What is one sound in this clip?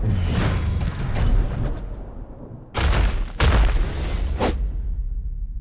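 Heavy blows land with loud, booming thuds.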